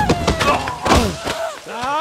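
A man cries out in anguish.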